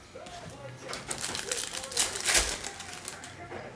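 A foil card pack tears open with a crinkle.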